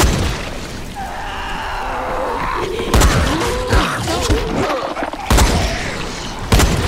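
Zombies growl and snarl.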